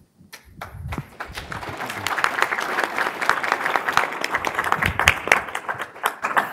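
An audience claps and applauds in a large room.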